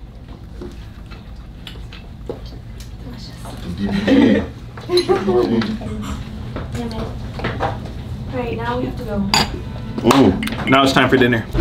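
A group of young men and women chatter and cheer nearby.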